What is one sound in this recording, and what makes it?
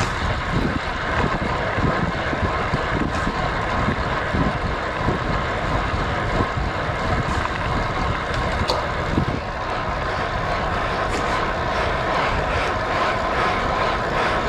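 Wind rushes past a cyclist descending at speed.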